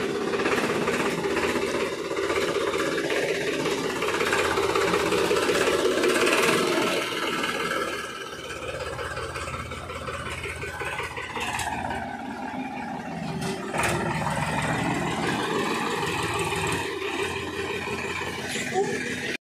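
A tractor diesel engine rumbles steadily close by.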